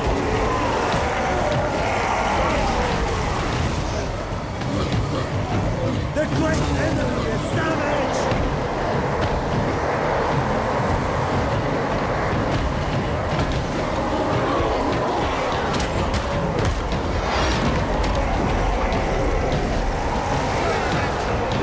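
A huge army clashes noisily in battle.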